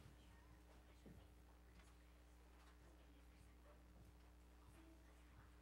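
A crowd of men and women chatter quietly in a room with some echo.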